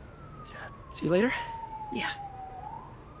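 A young woman laughs softly, close by.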